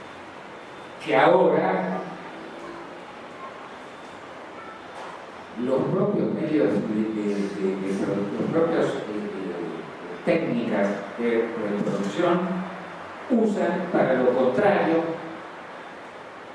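An elderly man speaks calmly into a microphone over loudspeakers, in a large room.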